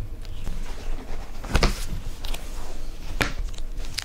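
A heavy binder cover thumps shut.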